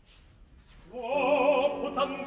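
A man begins singing loudly with a quavering voice in a large hall.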